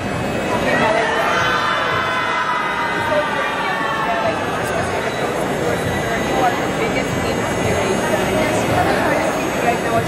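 A middle-aged woman talks cheerfully into a microphone close by.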